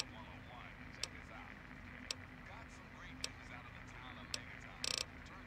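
Soft clicks sound as a menu selection moves.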